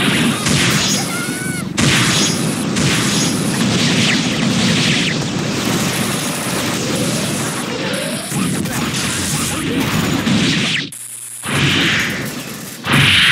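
Bursts of electronic blasts whoosh and boom.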